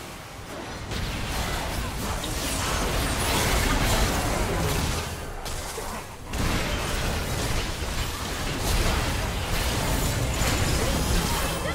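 Game spell effects crackle and burst during a battle.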